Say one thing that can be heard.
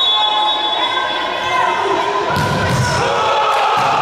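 A ball is kicked hard.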